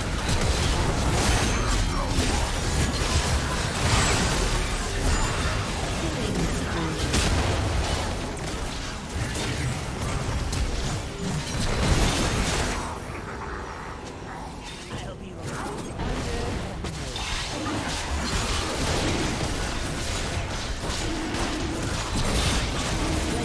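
Game weapons clash and strike repeatedly.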